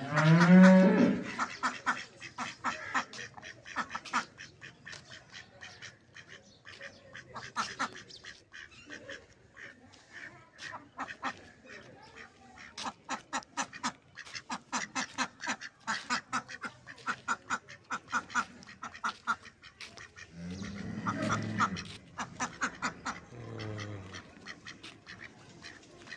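Ducks quack repeatedly close by.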